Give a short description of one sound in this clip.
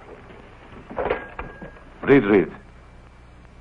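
A young man talks into a telephone.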